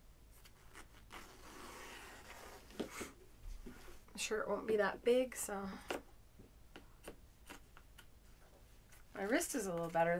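Fabric rustles as a woman handles it.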